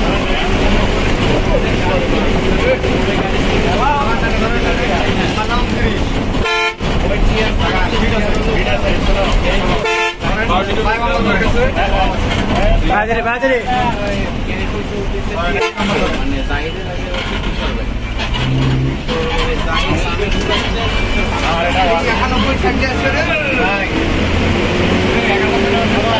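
Traffic passes close by on the road.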